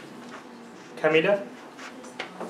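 A man speaks briefly and calmly nearby.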